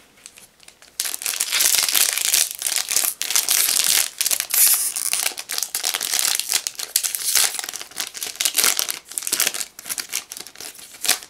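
A foil booster pack crinkles and is torn open.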